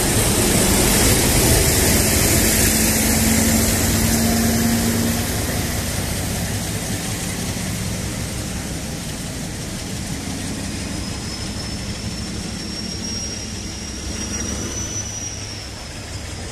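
A diesel locomotive's engine roars as it passes and slowly fades into the distance.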